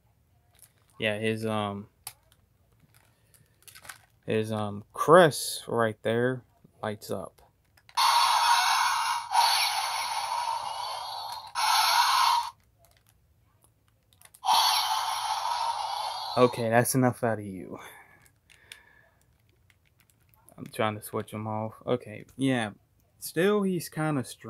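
A toy robot plays warbling electronic roars in short bursts.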